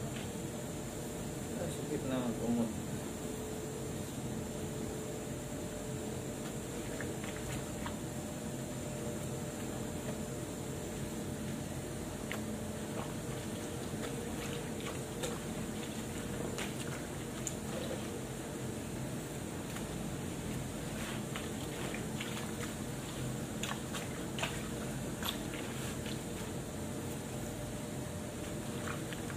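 Water splashes and sloshes as clothes are scrubbed by hand.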